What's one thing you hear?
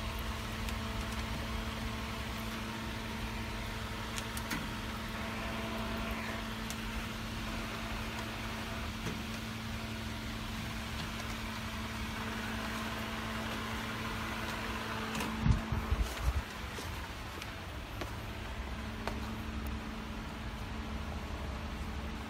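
A packaging machine hums and whirs steadily.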